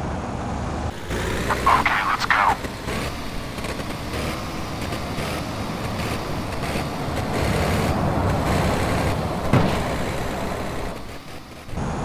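A heavy truck engine rumbles as it drives.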